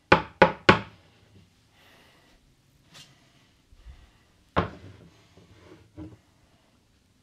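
Dishes clatter and knock against each other in a sink.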